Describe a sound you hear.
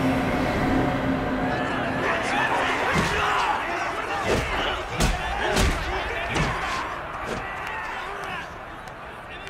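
A crowd cheers and roars in a large echoing hall.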